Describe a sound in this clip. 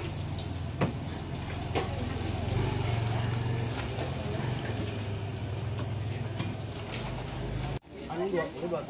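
Paper crinkles as food is wrapped.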